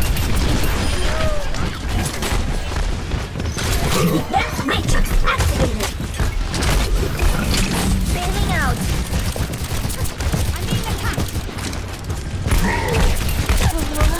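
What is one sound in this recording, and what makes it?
Guns fire in rapid bursts, with loud bangs and impacts.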